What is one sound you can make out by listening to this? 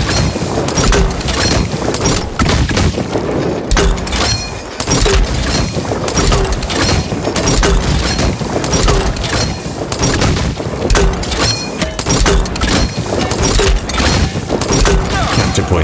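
Explosions boom with smoky blasts.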